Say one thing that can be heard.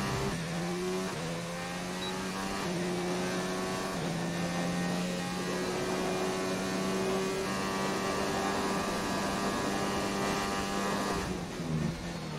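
A racing car engine roars at high revs, shifting up through the gears.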